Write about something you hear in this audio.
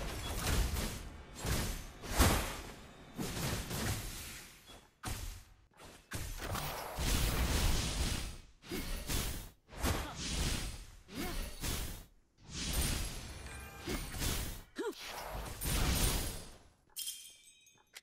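Game spell effects whoosh and crash during a fight.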